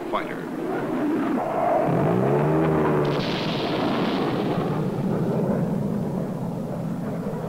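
A jet plane roars past overhead.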